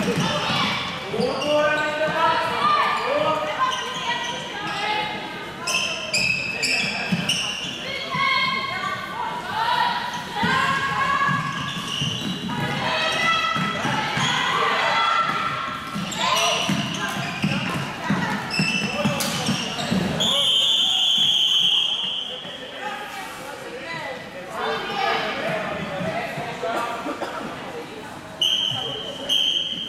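Plastic sticks clack against a ball on a hard floor.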